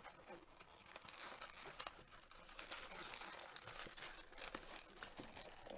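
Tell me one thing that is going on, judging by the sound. A cardboard box rustles and scrapes as it is opened by hand.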